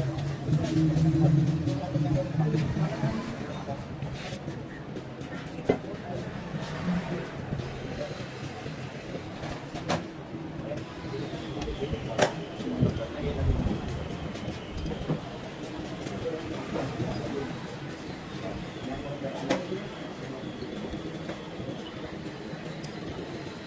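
Metal parts clink against each other.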